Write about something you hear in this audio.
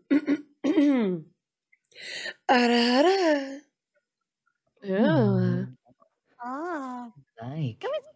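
A young woman speaks with animation into a microphone, in short bursts with pauses.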